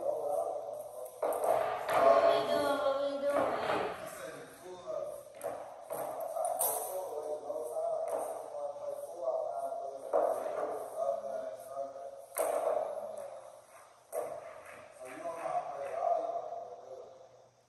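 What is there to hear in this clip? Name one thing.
Pool balls clatter together as they are gathered on a table.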